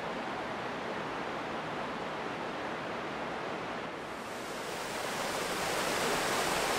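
Wind rustles through the leaves of trees.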